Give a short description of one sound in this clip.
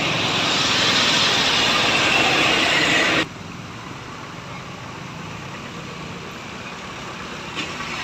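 Motorcycles ride past on a wet road.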